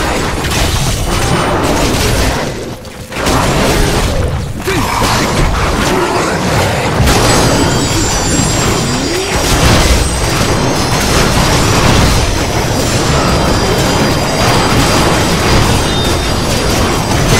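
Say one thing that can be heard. Blades clash and slash rapidly in a fierce fight.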